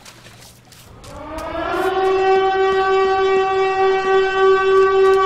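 A man sings or hums one long, rising then steady note into a microphone.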